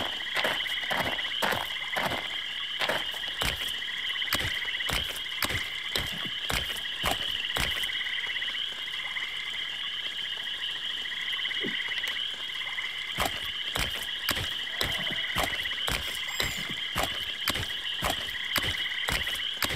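Footsteps tread steadily over soft, wet ground.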